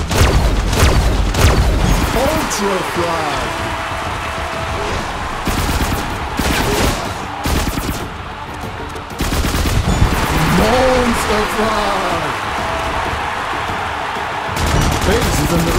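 Rapid gunfire blasts in quick bursts.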